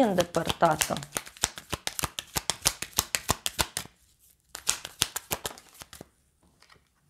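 Playing cards riffle and flick rapidly as they are shuffled.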